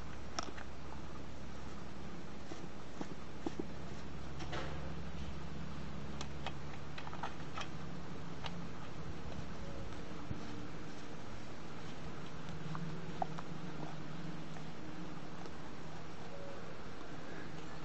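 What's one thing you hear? Fingers twist nuts on a chainsaw cover.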